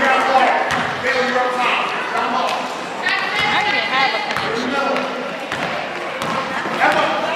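A crowd of children and adults calls out and chatters in a large echoing gym.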